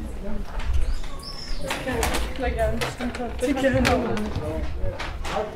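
Young women chat with each other close by.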